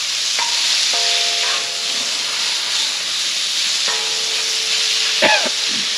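A wooden spatula scrapes and knocks against the griddle.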